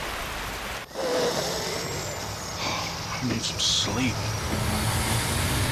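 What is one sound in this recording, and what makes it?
An older man speaks in a low, quiet voice.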